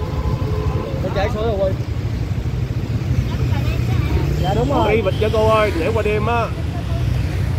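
A man and a woman talk briefly up close.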